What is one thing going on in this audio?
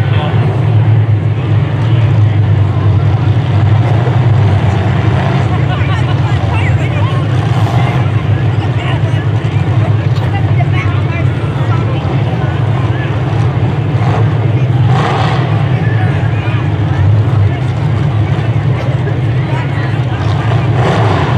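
Car engines idle with a steady low rumble.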